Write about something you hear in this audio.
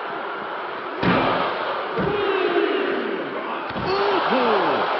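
Heavy thuds ring out as a body slams onto a hard floor.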